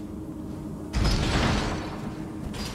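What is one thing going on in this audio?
A heavy blade whooshes through the air in a loud strike.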